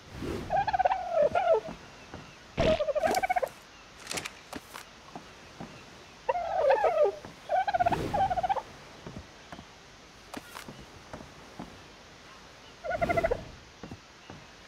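A bird squawks and honks up close.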